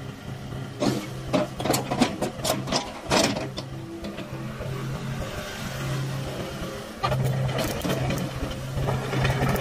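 A diesel excavator engine idles with a steady low rumble.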